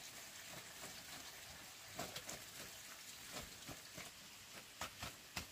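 A wood fire crackles softly.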